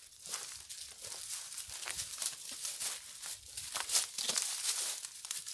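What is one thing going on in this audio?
Footsteps crunch through dry grass and twigs outdoors.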